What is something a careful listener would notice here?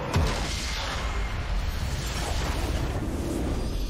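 Game combat effects crash and whoosh.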